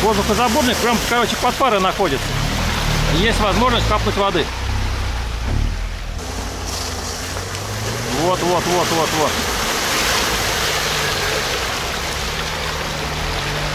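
A car engine revs as it strains through deep mud.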